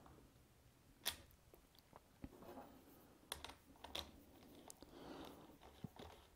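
Small metal parts click and clatter as a chain is handled.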